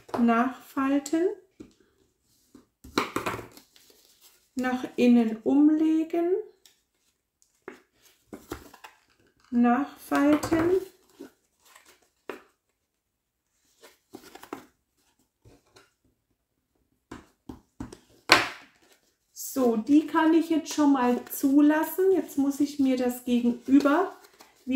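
Paper rustles and creases softly as it is folded.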